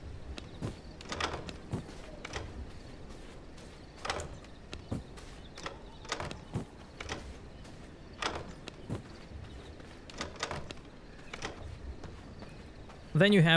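Soft clicks and taps sound in quick succession.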